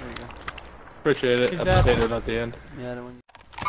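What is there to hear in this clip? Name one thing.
A young man talks through a headset microphone.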